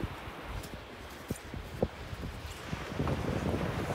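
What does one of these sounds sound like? Boots thud and crunch on sand.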